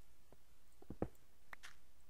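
A pickaxe knocks against stone.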